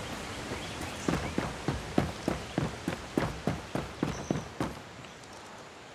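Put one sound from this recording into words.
Footsteps thud on a wooden bridge.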